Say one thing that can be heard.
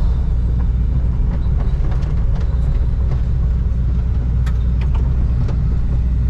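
A diesel excavator engine rumbles steadily inside the cab.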